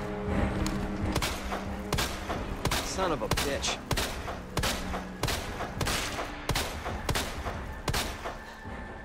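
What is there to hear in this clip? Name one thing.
Gunshots fire in quick succession.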